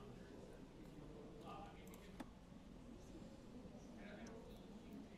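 A young woman talks calmly into a close microphone.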